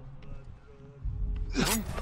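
A heavy weapon whooshes through the air and strikes.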